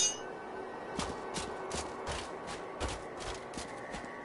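Footsteps crunch steadily along a path.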